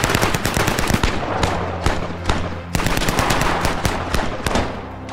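A submachine gun fires rapid bursts outdoors, with sharp cracks echoing.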